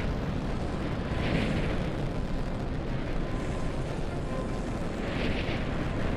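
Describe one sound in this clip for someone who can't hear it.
Jet thrusters roar steadily.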